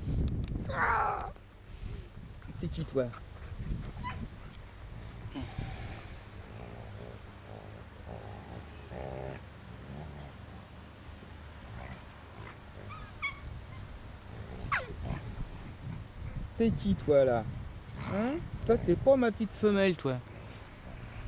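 Dogs yelp and whine in high, gliding cries.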